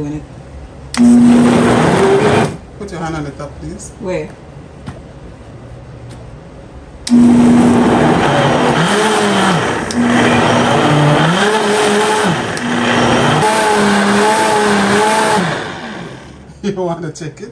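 A blender whirs loudly in short bursts and then runs steadily, grinding food.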